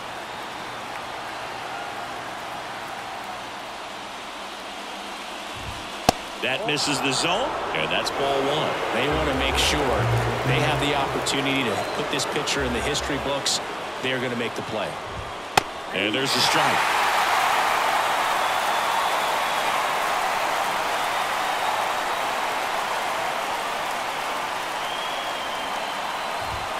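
A stadium crowd murmurs steadily, growing louder toward the end.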